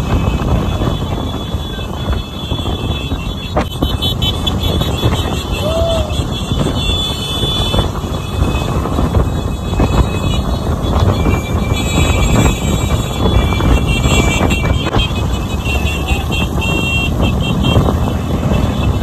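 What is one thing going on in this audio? Wind rushes past the microphone of a moving motorcycle.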